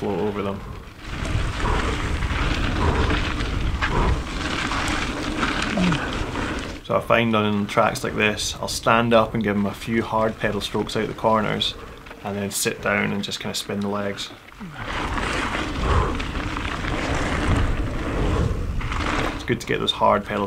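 Bike tyres roll and crunch over gravel at speed.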